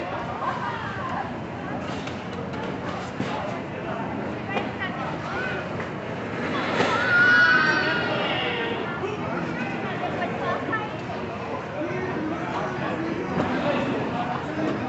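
A crowd of people chatters.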